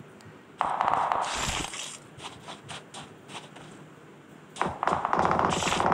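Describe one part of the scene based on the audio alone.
Footsteps patter on hard ground.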